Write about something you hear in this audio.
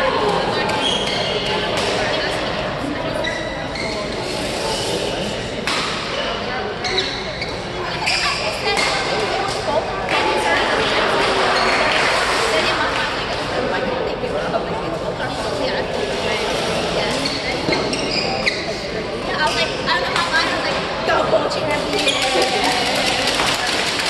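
Young women's voices chatter and call out in a large echoing hall.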